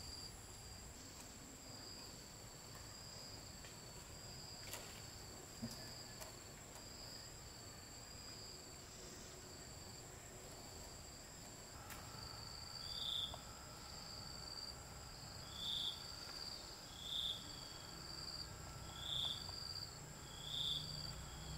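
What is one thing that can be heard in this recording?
A brush softly scrapes across wood.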